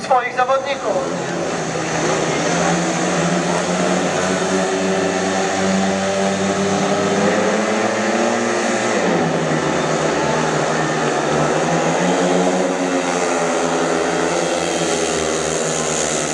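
Motorcycle engines rev loudly and roar as the bikes race off.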